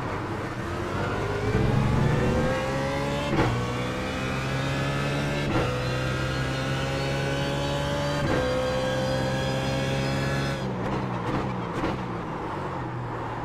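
A racing car engine roars at high revs, rising in pitch and dropping sharply at each gear change.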